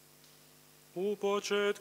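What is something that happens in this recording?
A man begins to chant through a microphone in a large echoing hall.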